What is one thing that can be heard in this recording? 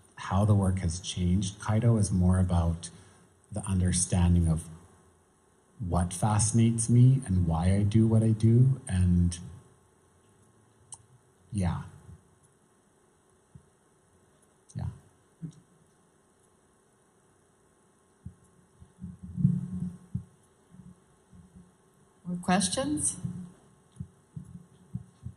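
A man speaks calmly into a microphone over loudspeakers in a large room.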